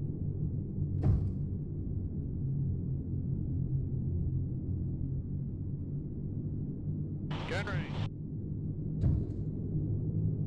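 Shells explode on the ground with heavy booms.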